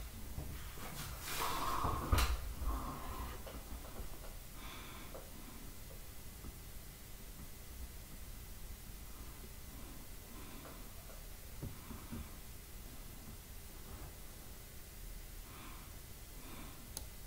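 A young man speaks quietly and briefly into a close microphone.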